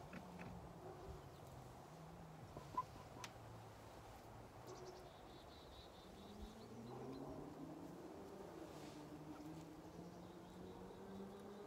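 A hen clucks and murmurs softly close by.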